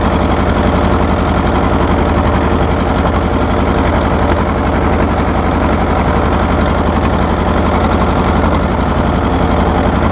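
An old tractor engine chugs loudly and steadily up close.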